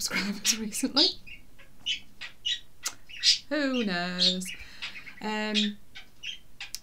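A middle-aged woman talks calmly and warmly into a close microphone.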